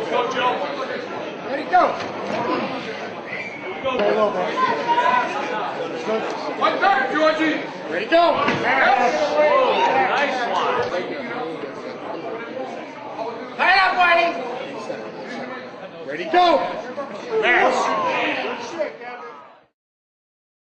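Men talk and shout with animation close by.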